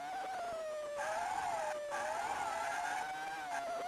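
Tyres skid and screech briefly.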